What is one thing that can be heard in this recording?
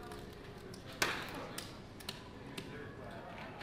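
Casino chips clack together on a table.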